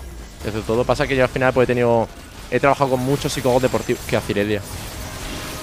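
A young man speaks loudly and excitedly into a close microphone.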